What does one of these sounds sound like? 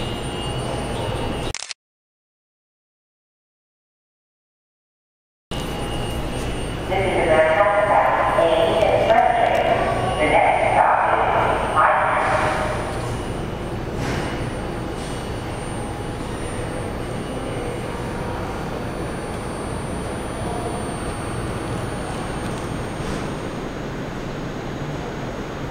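A subway train idles at a platform with a steady low rumble.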